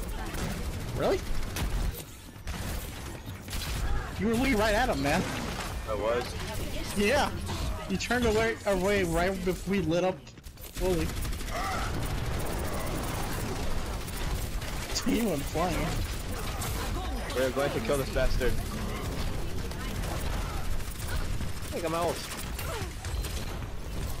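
A game gun fires rapid energy shots.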